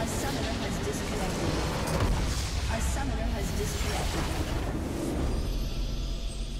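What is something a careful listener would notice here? Loud game battle effects crash and burst.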